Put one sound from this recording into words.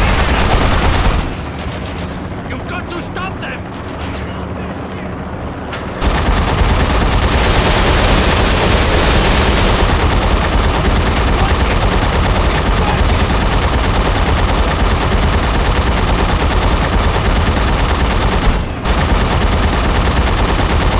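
A heavy rotary machine gun fires in a rapid, rattling stream.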